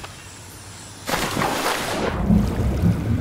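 A body plunges into water with a loud splash.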